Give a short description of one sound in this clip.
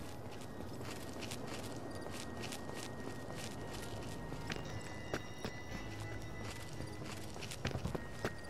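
Soft footsteps crunch on rocky gravel.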